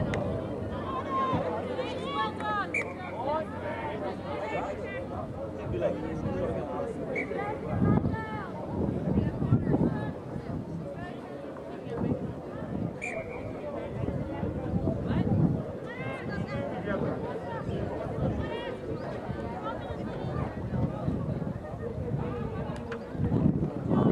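Women players shout and call to each other across an open field.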